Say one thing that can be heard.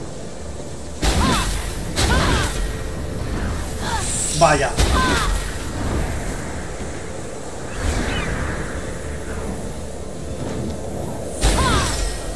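Electric bolts crackle and zap in short bursts.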